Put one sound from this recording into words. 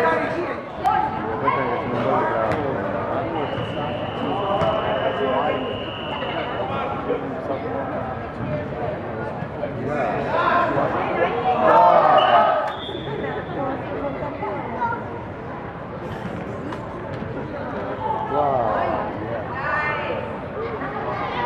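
Young boys shout to each other across an echoing indoor hall.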